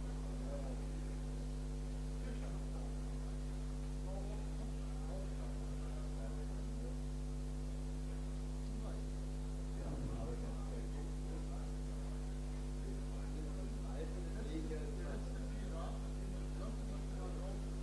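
A crowd murmurs quietly.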